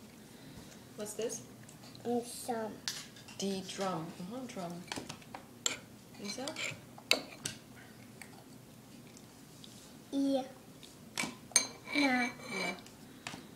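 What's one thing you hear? A young child speaks in a high voice, close by.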